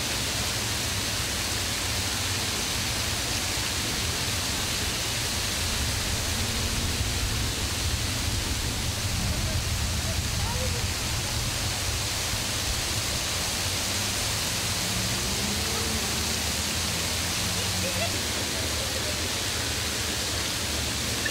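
Fountain jets splash into a basin outdoors.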